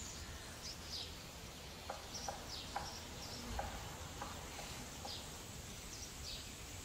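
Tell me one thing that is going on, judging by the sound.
Leaves rustle softly in a light breeze.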